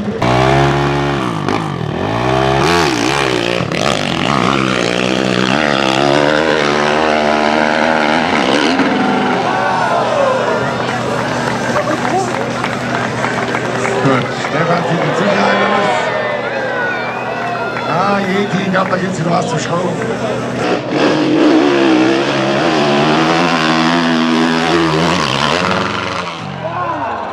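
A dirt bike engine revs hard and roars up a steep slope.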